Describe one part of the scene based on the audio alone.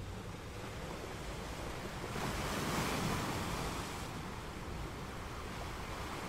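Ocean waves roll in and crash against rocks, swelling louder midway before easing off.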